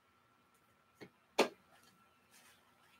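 Hands tap and knock on a box.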